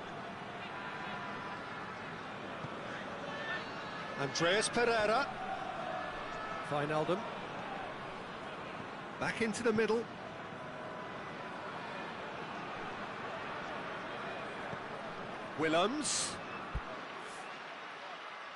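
A stadium crowd murmurs steadily in the distance.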